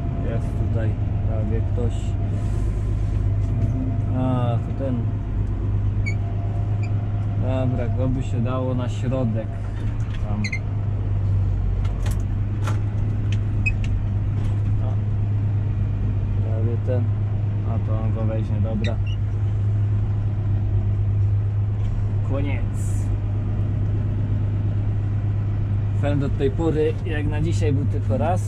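A tractor engine drones steadily from inside the cab.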